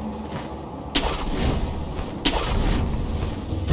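A grappling rope whips and snaps taut.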